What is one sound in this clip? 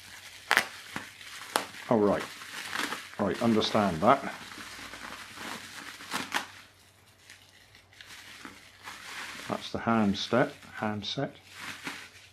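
Plastic bubble wrap crinkles and rustles as it is handled.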